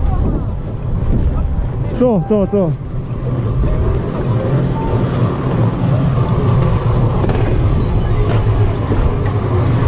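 Skis scrape and slide over snow.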